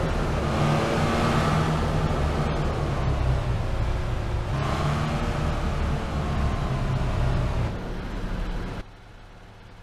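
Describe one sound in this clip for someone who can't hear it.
A car engine roars and its pitch falls as the car slows.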